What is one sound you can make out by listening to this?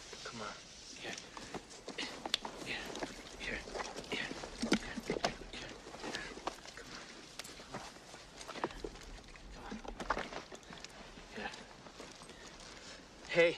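Bodies scuffle and scrape in loose sand.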